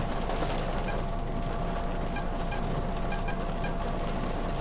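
A keypad beeps with short electronic tones as keys are pressed.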